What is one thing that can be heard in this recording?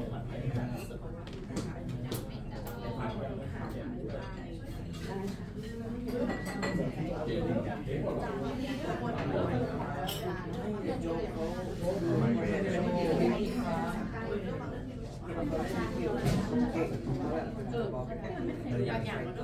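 A double bass is plucked.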